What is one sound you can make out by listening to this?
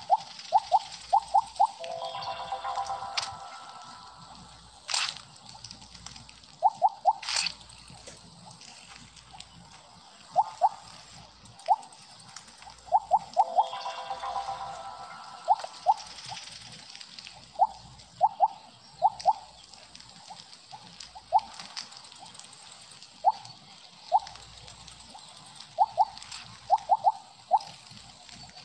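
Short bright blips sound over and over as a game snake eats glowing pellets.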